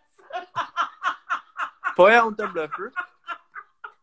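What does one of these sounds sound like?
A woman laughs loudly over an online call.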